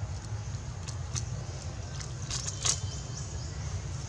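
A dry leaf crinkles and rustles in a monkey's hands.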